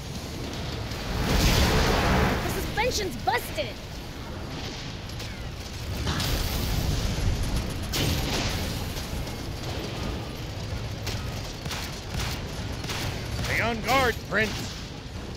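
Guns fire in quick bursts.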